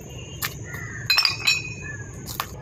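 Glass bottles clink together.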